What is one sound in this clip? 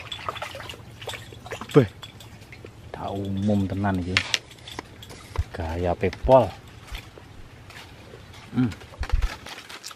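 A fish splashes in shallow water.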